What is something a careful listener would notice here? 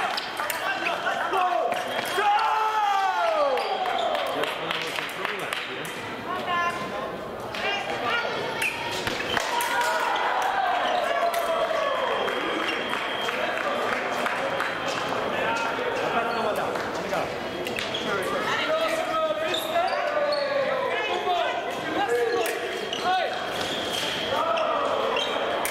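Sports shoes squeak sharply on a hard floor.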